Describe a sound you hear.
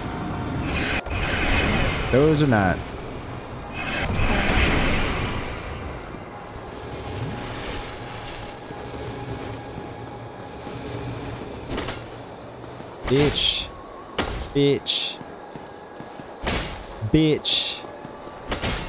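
Sword slashes and impacts ring out.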